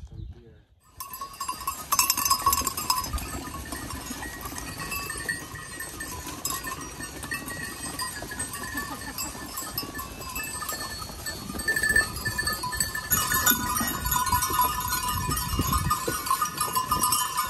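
Many goat hooves patter and scuff on a dirt path.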